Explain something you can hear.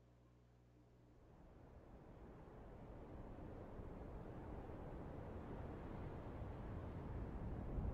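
A deep rumbling ambience swells and grows louder.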